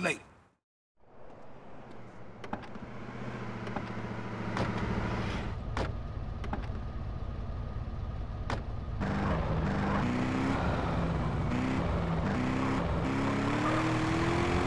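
A car engine idles and then revs as the car drives off.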